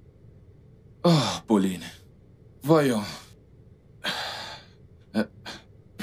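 A man speaks into a phone close by.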